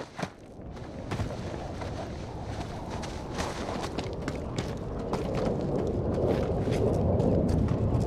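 Footsteps crunch quickly on dirt and gravel.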